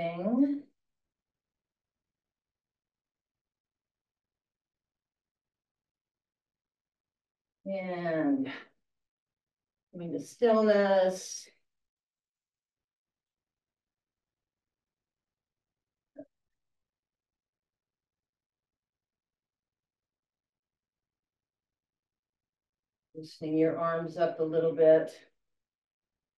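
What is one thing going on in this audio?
An elderly woman speaks calmly in short bursts, close to a microphone.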